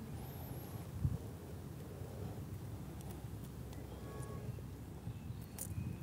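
A pencil scratches a mark on a wooden board.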